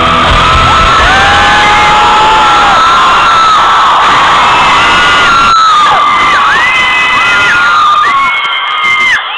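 A crowd cheers and screams.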